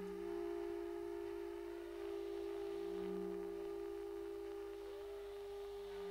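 A flute plays slow, sustained notes.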